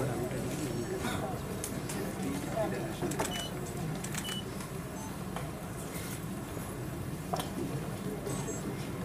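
A crowd of people murmurs and chatters in the background.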